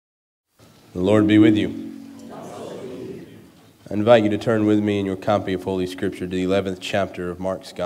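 A young man reads aloud calmly into a microphone.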